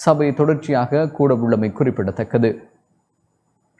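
A man speaks firmly through a microphone in a large hall.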